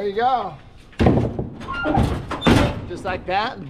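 A metal ladder clanks and rattles.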